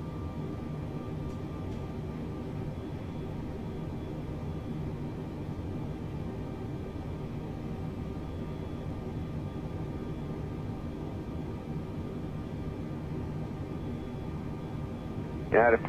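Jet engines hum steadily with a low, constant rumble.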